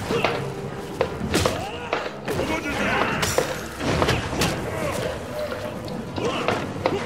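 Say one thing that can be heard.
Punches and kicks land with sharp, heavy thuds in quick bursts.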